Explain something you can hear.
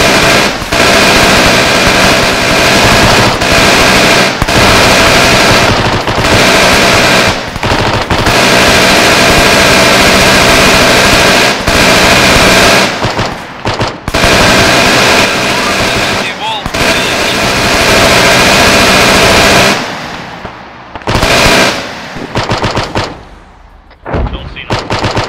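A heavy machine gun fires long, rapid bursts close by.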